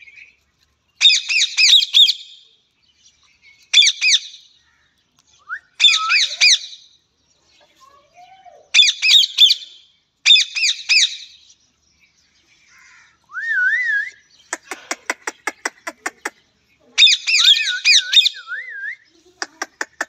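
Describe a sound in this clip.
Parakeets screech in sharp bursts close by.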